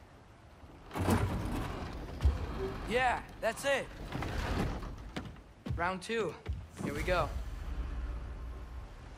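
Heavy footsteps thud on wooden boards.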